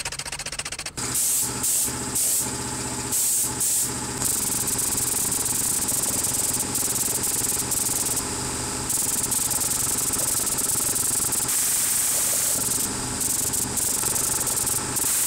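A spray gun hisses in short and long bursts.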